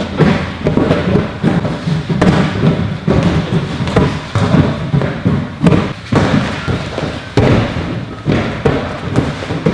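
An exercise ball thumps against hands as it is caught and thrown.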